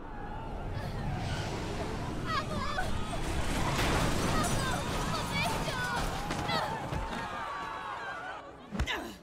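A crowd screams and runs in panic.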